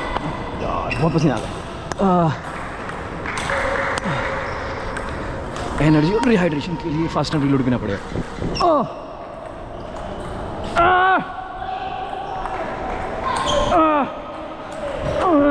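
Shoes squeak sharply on the floor.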